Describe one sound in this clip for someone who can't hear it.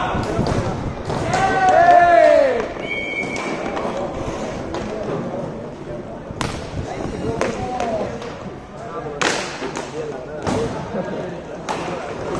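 Inline skate wheels roll and scrape on a hard rink floor.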